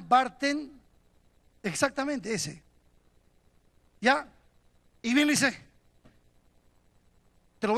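A middle-aged man preaches forcefully into a microphone, in short emphatic bursts with pauses.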